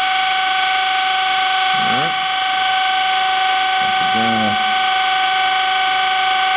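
A grinding wheel spins with a steady high whine.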